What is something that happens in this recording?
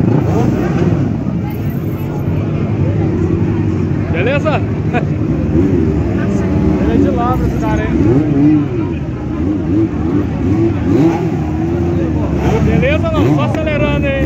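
A crowd of men and women chatters outdoors.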